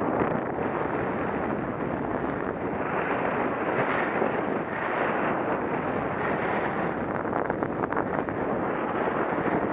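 Wind rushes loudly past a close microphone.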